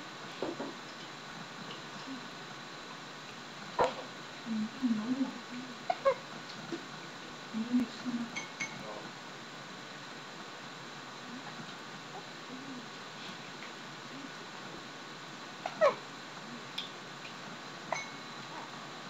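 A baby coos and grunts softly up close.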